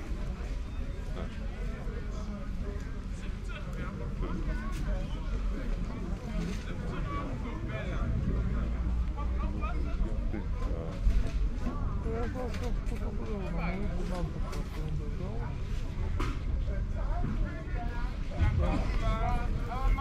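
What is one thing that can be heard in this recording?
Voices of men and women chatter nearby outdoors.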